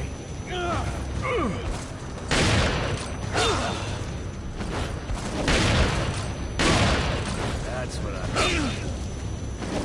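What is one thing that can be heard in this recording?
Men grunt and groan during a struggle.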